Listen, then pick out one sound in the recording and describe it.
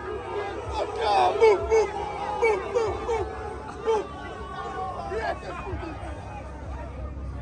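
A large crowd shouts and cheers excitedly outdoors.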